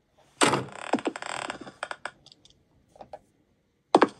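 Fingers tap lightly on a glass touchscreen.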